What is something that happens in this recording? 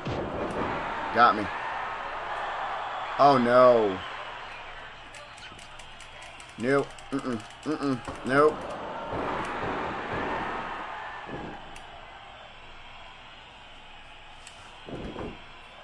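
A crowd roars and cheers throughout.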